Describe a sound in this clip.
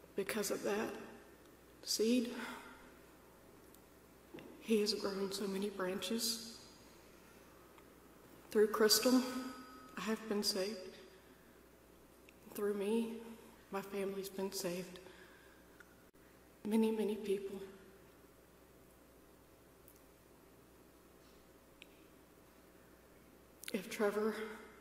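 A woman speaks slowly and calmly into a microphone, with pauses, in a reverberant hall.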